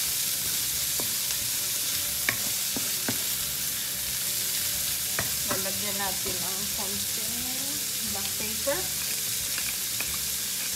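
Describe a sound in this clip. A wooden spoon scrapes and knocks against a pan.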